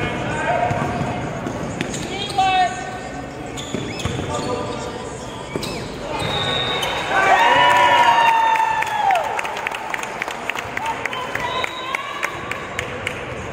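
Voices of young men call out in a large echoing gym.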